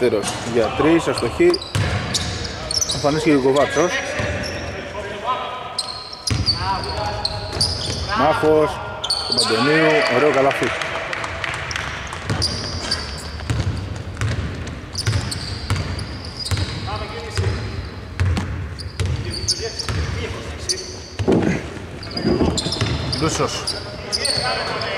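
Sneakers squeak on a hardwood court in a large echoing arena.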